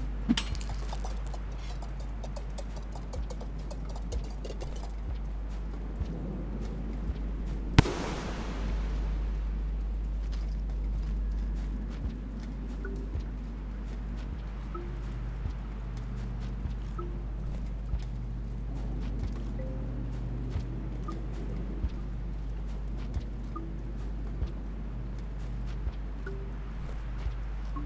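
Soft thumps sound as a small creature clambers on a pole.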